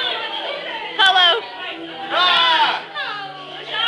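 A young person screams loudly close by.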